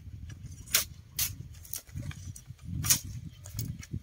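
A machete chops into bamboo with sharp cracks.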